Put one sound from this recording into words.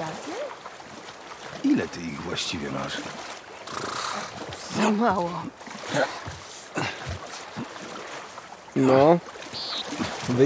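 Water splashes as a person swims and climbs out.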